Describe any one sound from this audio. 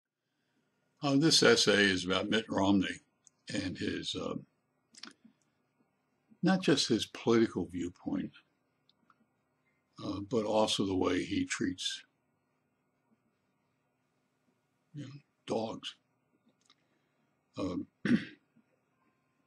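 An elderly man talks calmly and close to a microphone, with pauses.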